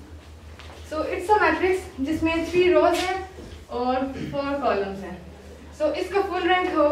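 A young woman speaks clearly and explains, close by.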